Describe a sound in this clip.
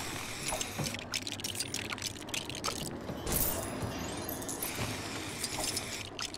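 Small coins jingle and clink as they are picked up.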